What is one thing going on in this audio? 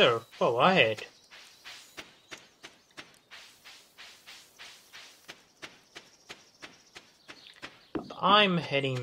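Footsteps patter quickly on dirt.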